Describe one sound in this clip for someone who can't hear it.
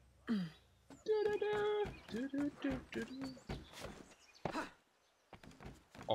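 Footsteps patter quickly over roof tiles.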